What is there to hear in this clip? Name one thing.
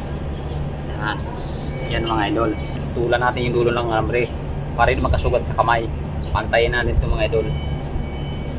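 A young man speaks casually nearby.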